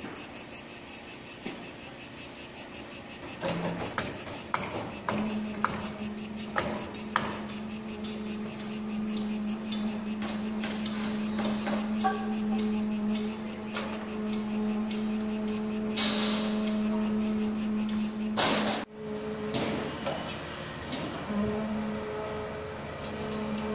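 Metal clanks and knocks now and then.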